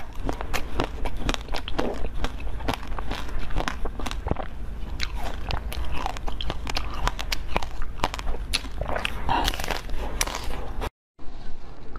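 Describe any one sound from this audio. A young woman bites and crunches on hard frozen sweets close to a microphone.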